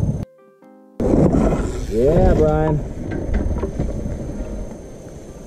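A bicycle rattles past over rocky ground.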